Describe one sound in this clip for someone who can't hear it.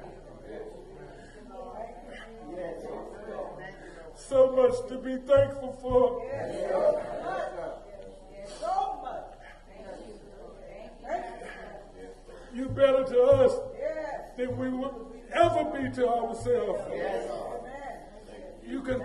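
A man preaches with animation through a microphone in an echoing hall.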